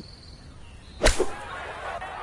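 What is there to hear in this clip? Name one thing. A golf club strikes a ball out of sand.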